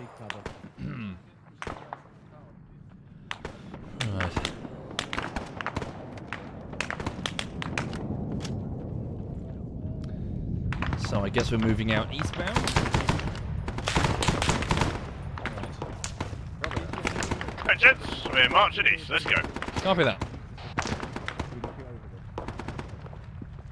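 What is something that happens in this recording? Rifle shots crack repeatedly, some close and some farther off.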